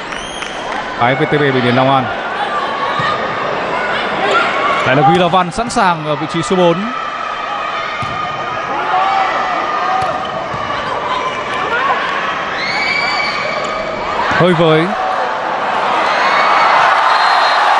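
A large crowd cheers and roars in an echoing hall.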